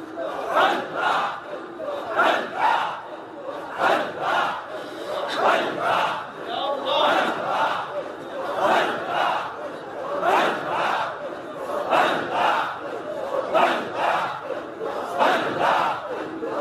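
A man speaks with fervour into a microphone, heard through loudspeakers with echo.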